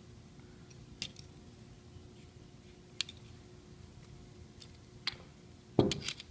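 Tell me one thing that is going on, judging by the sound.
Metal caliper jaws click and tap against a small metal part.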